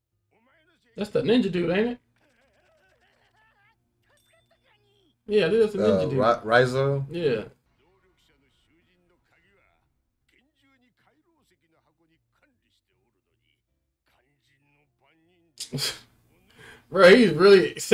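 A young man speaks calmly and close by, in short bursts.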